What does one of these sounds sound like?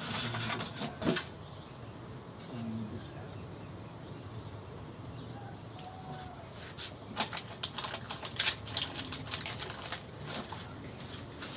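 A man rummages through boxes and packages close by, with rustling and knocks.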